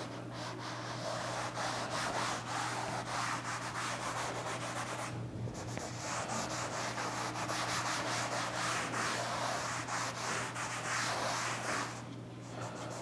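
A board eraser rubs steadily across a chalkboard.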